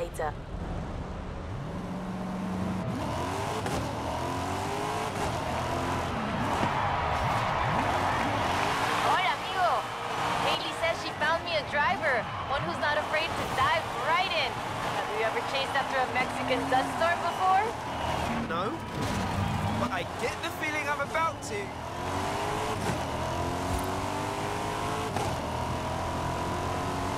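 A sports car engine roars and revs up through the gears.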